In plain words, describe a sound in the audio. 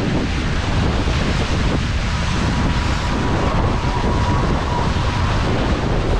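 Water rushes and splashes against a fast-moving hull.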